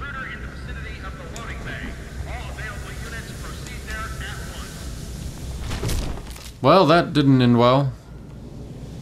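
A young man speaks close to a microphone, loudly and with animation.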